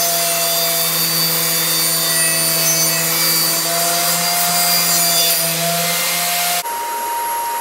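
A table saw runs with a steady whine as a board is fed through.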